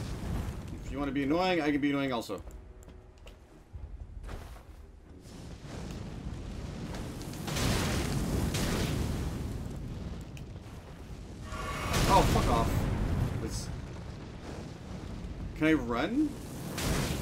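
A man talks into a microphone close by.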